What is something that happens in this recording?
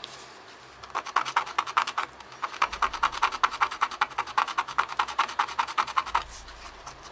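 A small file rasps back and forth on metal in quick, even strokes.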